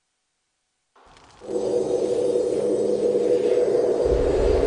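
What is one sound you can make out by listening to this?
Loud, steady fantasy game music begins abruptly and plays on.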